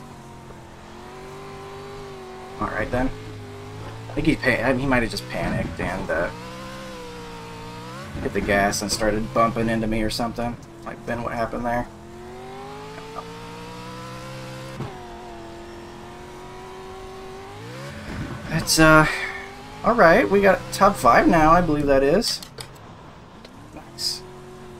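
A racing car engine drones steadily, rising and falling in pitch as the car speeds up and slows down.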